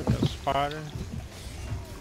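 A blade swings and slashes with a sharp whoosh.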